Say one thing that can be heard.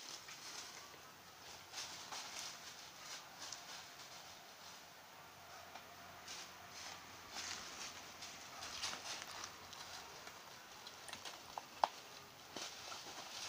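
Dogs rustle through dry leaves as they sniff about.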